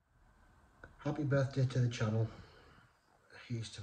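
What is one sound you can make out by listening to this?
A man speaks calmly and close up.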